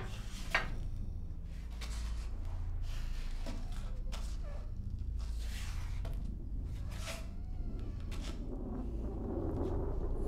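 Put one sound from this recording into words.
A person's footsteps move across a floor indoors.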